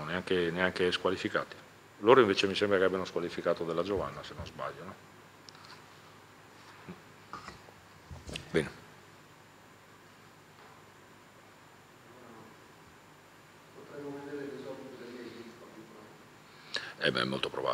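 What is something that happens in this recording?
A man speaks calmly into a microphone, with pauses.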